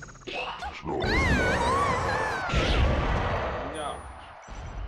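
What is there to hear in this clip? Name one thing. A video game explosion bursts and rumbles.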